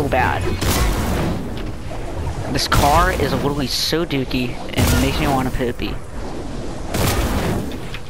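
A pickaxe swings and whooshes through the air.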